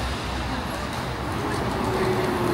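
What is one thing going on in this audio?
A bus engine hums as the bus drives close by.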